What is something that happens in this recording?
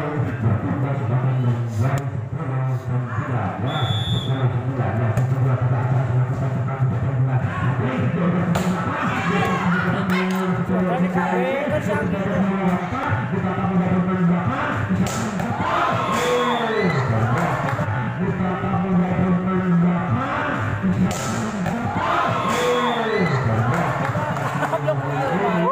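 A volleyball is struck hard by hands again and again.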